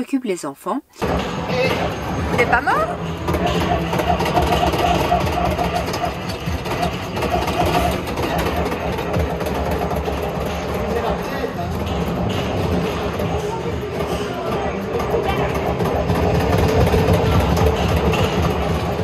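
An arcade shooting game blares loud gunfire and effects.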